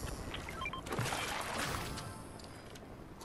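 Water splashes as a fish is pulled from the water.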